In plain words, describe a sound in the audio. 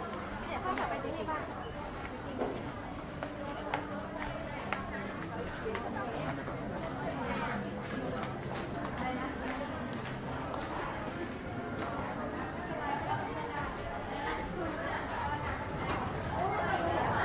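A crowd of shoppers chatters nearby.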